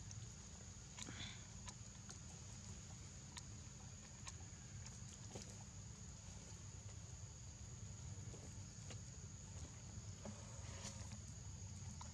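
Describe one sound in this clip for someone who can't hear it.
A baby monkey squeaks softly.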